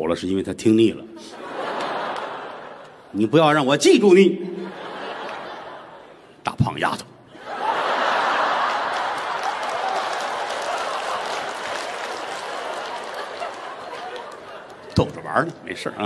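A large audience laughs and applauds.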